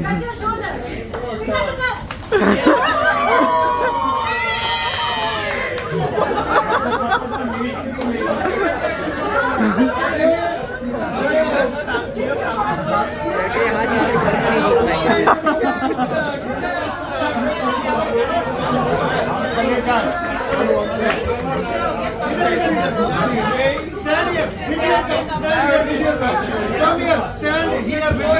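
A crowd of men and women chatter and cheer loudly in a lively room.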